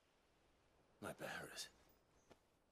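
A young man asks a short, puzzled question.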